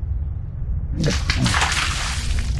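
A magical whoosh swells up.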